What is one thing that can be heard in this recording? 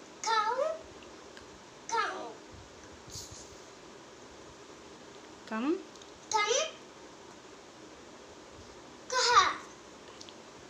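A young boy speaks close by in short, clear phrases with pauses between them.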